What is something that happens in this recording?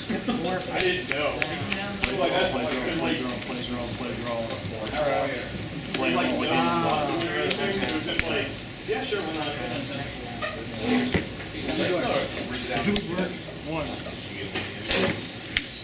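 Playing cards tap and slide on a cloth mat.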